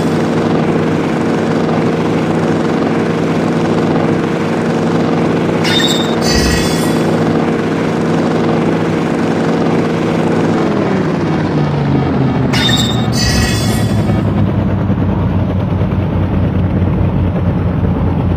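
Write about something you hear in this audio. A helicopter's rotor and engine hum steadily, then drop lower in pitch.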